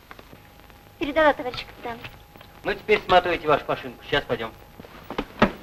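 A young woman speaks close by in a low, urgent voice.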